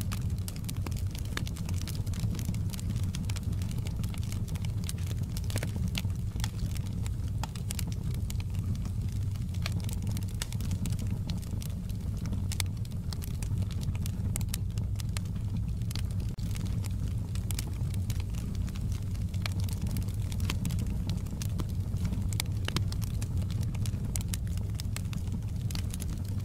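Logs crackle and pop sharply in a burning fire.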